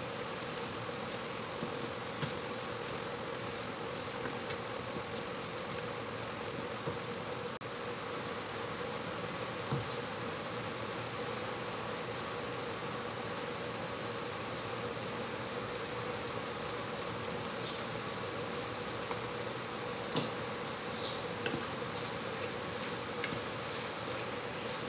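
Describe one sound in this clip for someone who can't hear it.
Ground meat sizzles steadily in a hot pan.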